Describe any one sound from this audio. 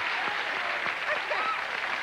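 A man shouts with joy.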